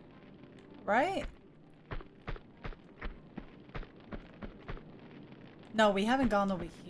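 A young woman speaks briefly with animation into a close microphone.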